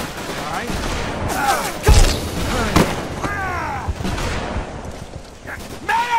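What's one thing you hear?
A man shouts urgently for help.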